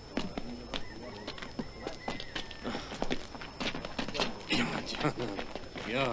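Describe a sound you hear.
A crowd murmurs and shuffles outdoors.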